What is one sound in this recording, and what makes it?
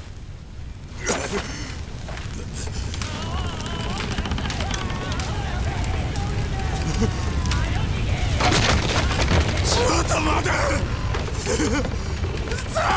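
A fire roars and crackles.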